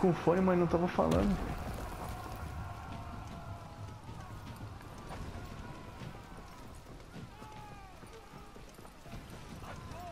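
Armoured soldiers run with heavy footsteps.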